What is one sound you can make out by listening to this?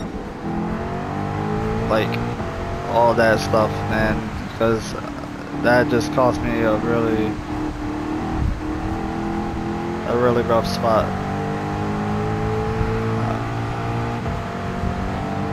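A racing car engine roars steadily, its pitch rising and dropping as it shifts gears.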